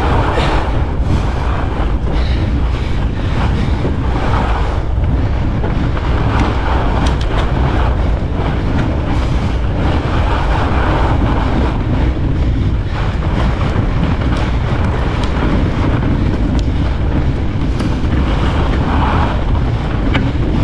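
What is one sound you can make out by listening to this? Wind rushes and buffets loudly past a fast-moving bicycle.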